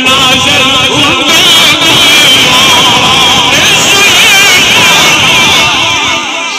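A man chants in a loud, wavering voice through a loudspeaker.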